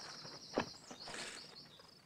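Footsteps crunch on dry ground.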